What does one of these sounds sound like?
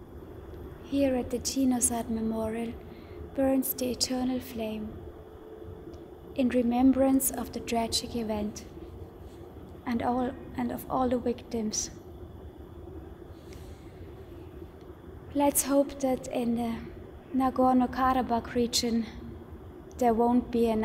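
A young woman speaks calmly and close by, with pauses.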